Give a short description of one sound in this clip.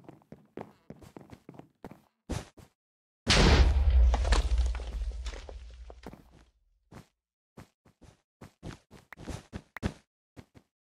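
Blocks thud softly as they are placed one after another in quick succession.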